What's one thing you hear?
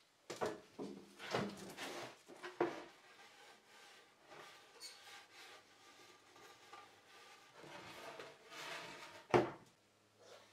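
A wooden board knocks and scrapes against a wooden bench.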